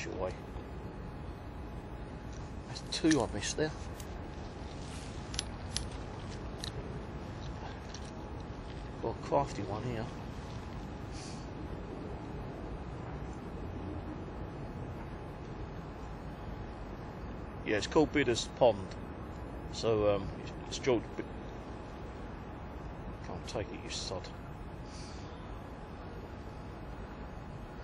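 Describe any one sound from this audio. Water ripples gently outdoors.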